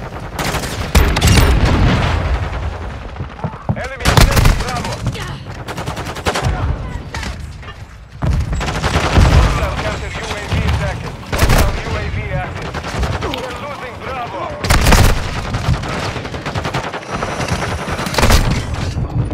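Shotgun blasts boom loudly with sharp echoes.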